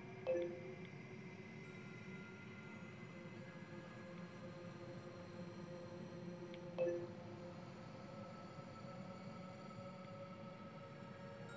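Calm, soft electronic music plays steadily.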